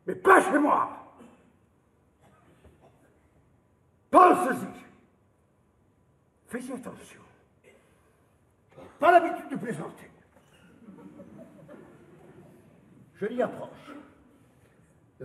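A middle-aged man speaks loudly and forcefully in short outbursts with pauses, echoing in a large hall.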